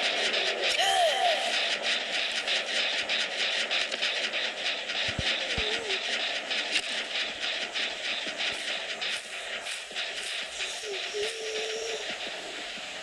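Heavy footsteps tread steadily over soft ground.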